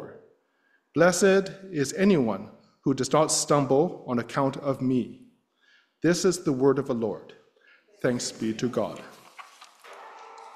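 A middle-aged man reads aloud calmly through a microphone.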